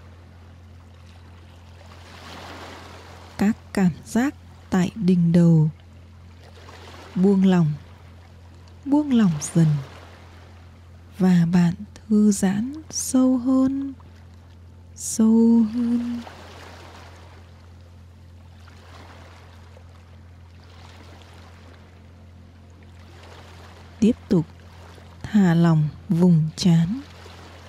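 Small waves lap gently against a pebbly shore.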